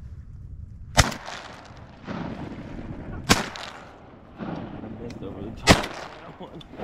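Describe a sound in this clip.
A shotgun fires loud, sharp blasts outdoors, a few seconds apart.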